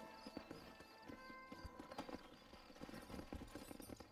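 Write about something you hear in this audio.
Horse hooves clop on dirt.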